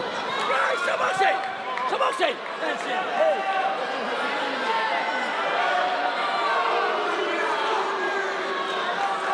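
A crowd shouts and cheers throughout a large arena.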